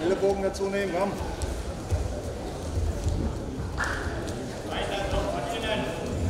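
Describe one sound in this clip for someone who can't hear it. A man calls out loudly in an echoing hall.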